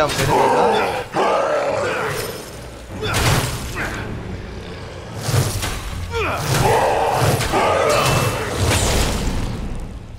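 Blades slash and strike with sharp impacts.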